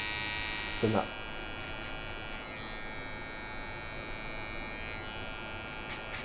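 Electric hair clippers buzz steadily, close by.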